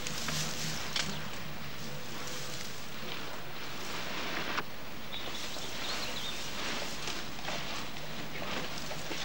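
Straw rustles as a newborn elephant calf stirs on its bedding.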